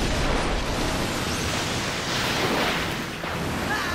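A huge wave of water rushes and roars.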